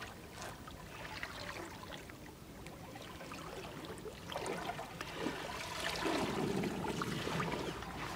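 Water splashes and drips.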